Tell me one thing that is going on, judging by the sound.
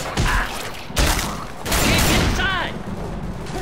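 A shotgun fires with loud, booming blasts.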